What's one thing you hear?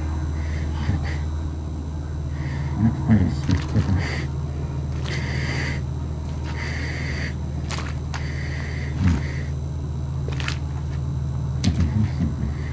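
Fluorescent lights hum and buzz steadily.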